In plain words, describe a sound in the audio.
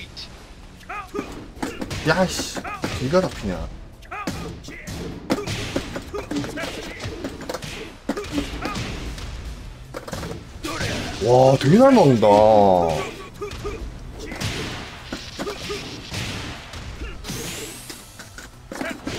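Punches and kicks land with sharp, rapid thuds and smacks.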